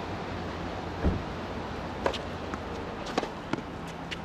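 A tennis ball is struck with a racket, popping sharply.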